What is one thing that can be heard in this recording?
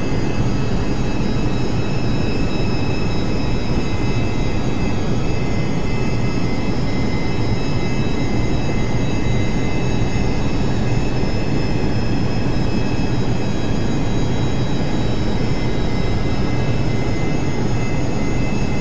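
Aircraft engines drone steadily with a loud, constant roar and a high whine.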